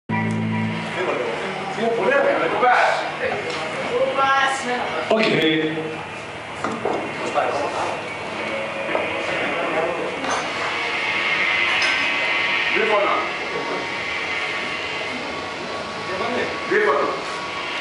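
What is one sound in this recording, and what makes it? A man sings into a microphone over a loudspeaker.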